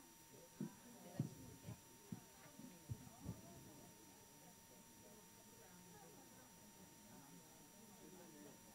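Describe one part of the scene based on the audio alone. Many men and women chat quietly, a low murmur of voices filling the room.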